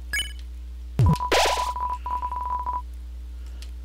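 A rising electronic chime plays with a steady beeping tone.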